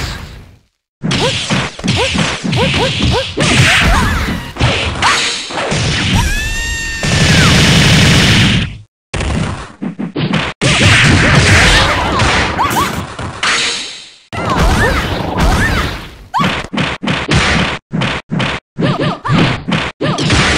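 Punches and kicks land with sharp thuds in a fighting game.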